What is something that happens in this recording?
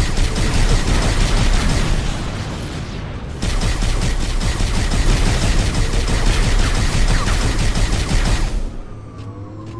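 A hovering alien vehicle hums and roars along in a video game.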